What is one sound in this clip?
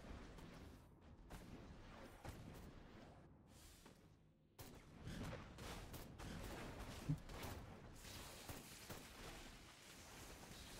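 Jetpack thrusters roar steadily.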